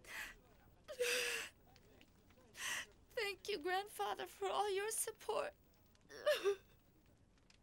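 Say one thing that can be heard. A young woman sobs and speaks tearfully.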